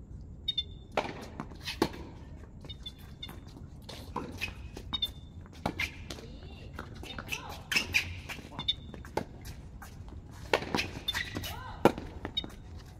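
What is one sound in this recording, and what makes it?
Tennis balls are struck with rackets in a rally outdoors.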